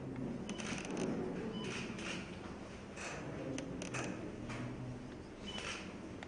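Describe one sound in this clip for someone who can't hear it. Pens scratch on paper.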